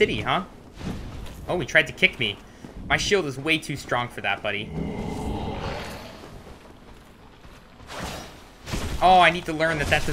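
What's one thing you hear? A sword swings and clangs against metal armour.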